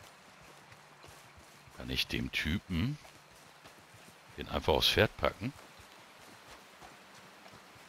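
Footsteps tread softly on grass.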